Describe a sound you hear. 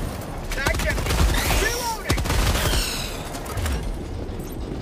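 A blast booms and crackles.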